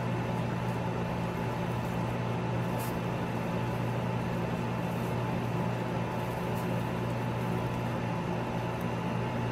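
Guinea pigs munch on dry hay.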